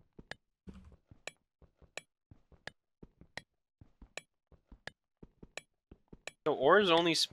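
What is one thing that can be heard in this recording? A pickaxe taps steadily and repeatedly on stone.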